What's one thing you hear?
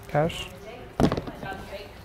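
A shoe box knocks onto a counter.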